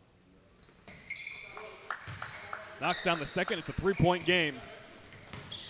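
Spectators cheer and shout in an echoing gym.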